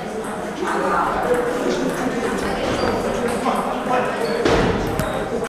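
Table tennis balls click sharply against paddles and tables in a large echoing hall.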